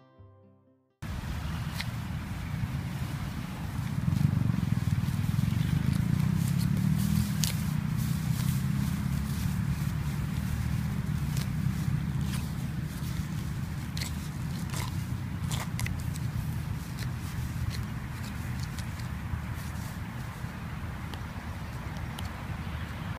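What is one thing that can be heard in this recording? Wind blows across the microphone outdoors with a low rumble.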